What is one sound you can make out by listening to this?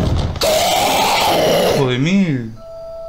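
A creature lets out a loud, harsh screech.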